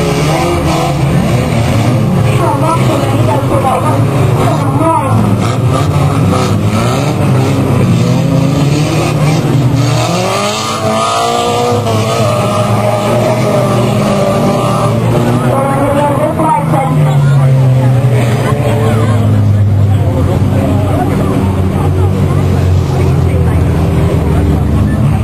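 Car engines roar and rev as cars race around a track.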